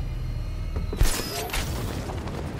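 A grappling line fires with a sharp snap.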